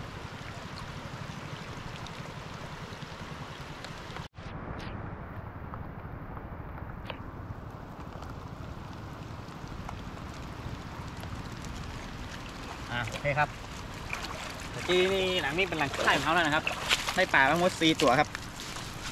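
Water rushes steadily outdoors.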